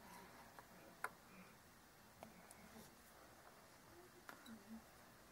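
A soldering iron tip taps against a circuit board.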